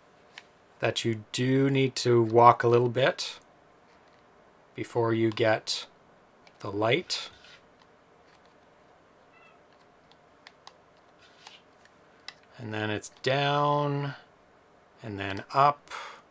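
A man talks with animation close to a microphone, in short bursts with pauses.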